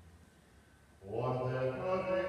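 An elderly man chants through a microphone in a large echoing hall.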